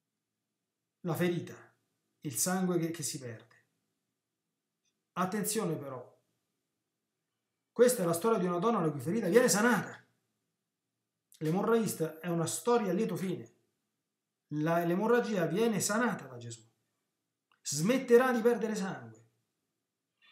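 A middle-aged man speaks calmly and with animation into a close microphone, in short bursts with pauses.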